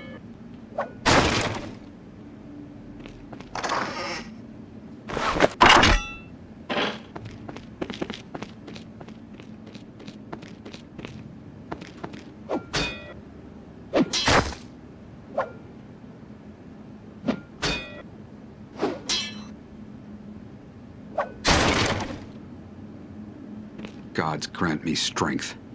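Blades strike and clash in a fight, in short bursts.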